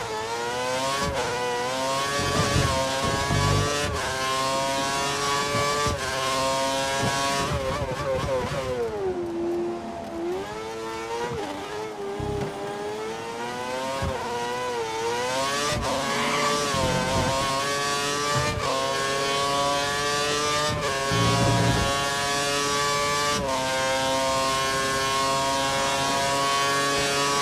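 A racing car engine screams at high revs, its pitch rising through each gear and dropping sharply when braking for corners.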